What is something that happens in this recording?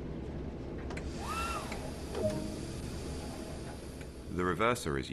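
Compressed air hisses as a brake is released.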